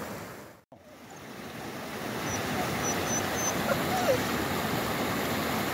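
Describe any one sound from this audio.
A shallow creek trickles and babbles over rocks.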